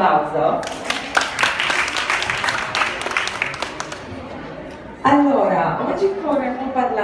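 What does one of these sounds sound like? A woman speaks through a microphone and loudspeaker in an echoing room.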